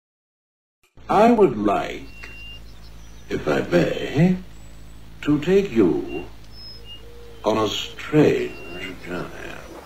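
An elderly man speaks with animation, close to a microphone.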